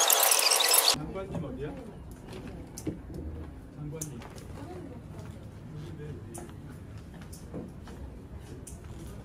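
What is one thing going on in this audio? Men and women murmur quietly nearby.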